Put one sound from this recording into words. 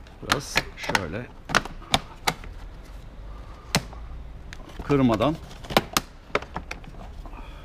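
Fingers tap and knock on a motorcycle's handlebar controls.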